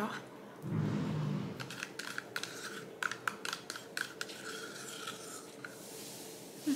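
A spoon clinks against a plastic cup.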